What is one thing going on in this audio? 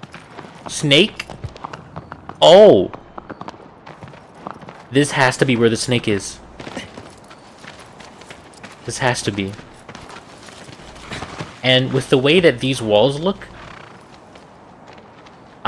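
A horse's hooves clop on stone and grass as it gallops.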